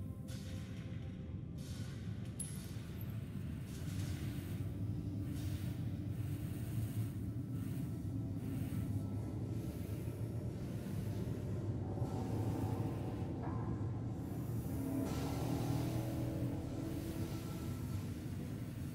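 A spacecraft's engines hum with a low, steady drone.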